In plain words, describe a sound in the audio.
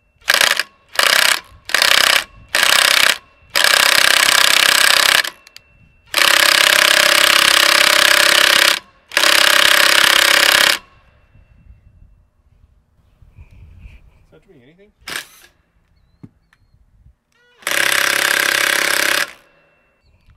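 A cordless drill whirs in short bursts, then in long steady runs.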